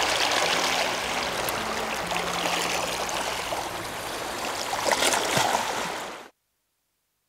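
Waves wash against a rocky shore outdoors.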